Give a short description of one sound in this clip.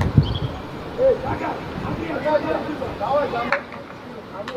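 Young players shout to each other across an open outdoor pitch.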